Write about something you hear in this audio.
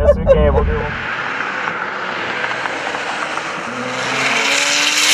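A car approaches along a road, its engine and tyres growing louder.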